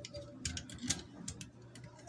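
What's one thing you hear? Hands handle loose wires with small clicks and rustles.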